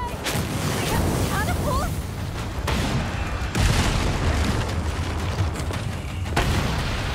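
Loud explosions boom and rumble nearby.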